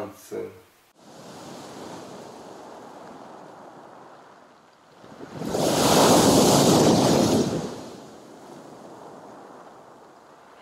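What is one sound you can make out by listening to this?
Waves wash over pebbles on a shore.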